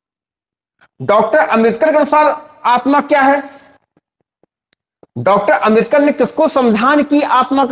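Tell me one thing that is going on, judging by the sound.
A man speaks with animation, close by, as if lecturing.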